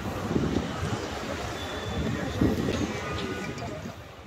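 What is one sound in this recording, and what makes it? People chatter in the distance in an open square.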